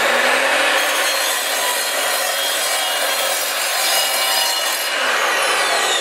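A saw blade cuts through a plank with a rough grinding noise.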